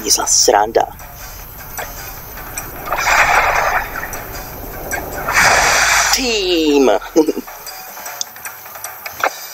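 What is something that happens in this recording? Lava bubbles and hisses.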